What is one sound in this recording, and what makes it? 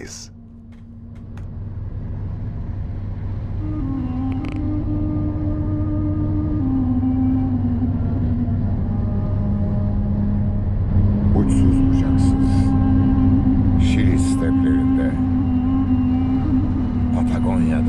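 A car engine hums steadily and rises in pitch as the car speeds up.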